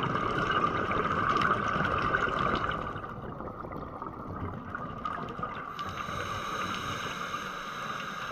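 Muffled underwater rumbling and hiss fill the scene.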